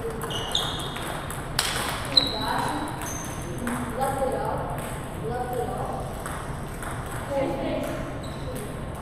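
Ping-pong balls click on tables and paddles in a large echoing hall.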